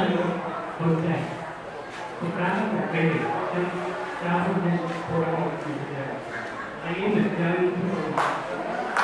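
An elderly man speaks steadily into a microphone, heard through a loudspeaker.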